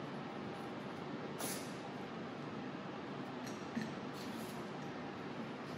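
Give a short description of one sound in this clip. Metal tripod parts click and clatter as they are adjusted.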